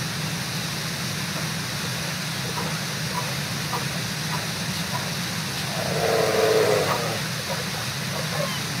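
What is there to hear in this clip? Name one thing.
A river rushes steadily nearby.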